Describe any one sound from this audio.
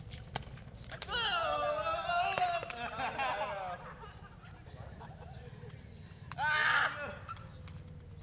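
Young men shout and laugh with excitement outdoors.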